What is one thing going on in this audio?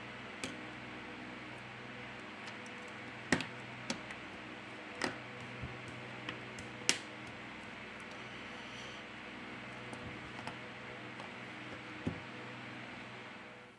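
Fingers tap and click on a plastic phone frame.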